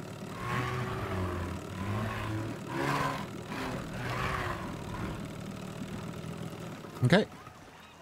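A small motorboat engine hums and drones over water.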